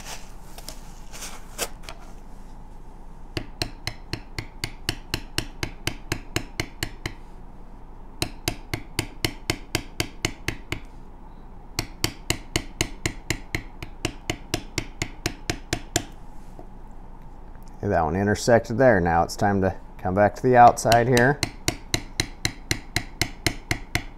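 A mallet taps a metal stamping tool into leather in quick, sharp clicks.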